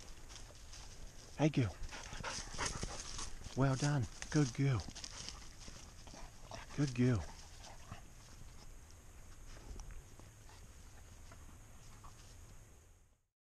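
Dry leaves rustle and twigs crackle as a dog moves about on the forest floor.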